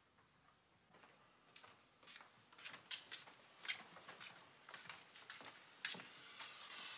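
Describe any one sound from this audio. A man's footsteps tread across a floor.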